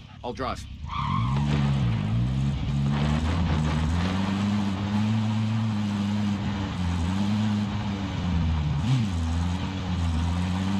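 A vehicle engine hums steadily and revs up and down as it drives.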